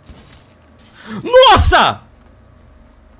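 A young man shouts loudly into a close microphone.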